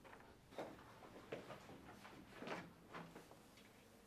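Papers rustle as they are handed over.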